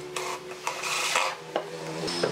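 A cordless drill whirs as it drives a screw into wood.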